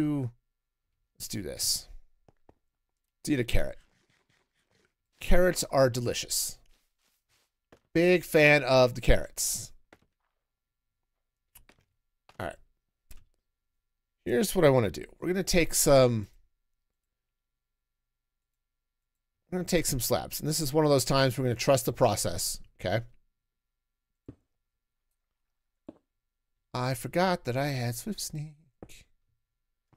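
A middle-aged man talks with animation into a close microphone, in bursts with pauses.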